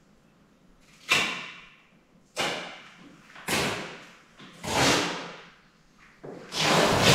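A plastic barrel lid scrapes and rasps as a person twists it open.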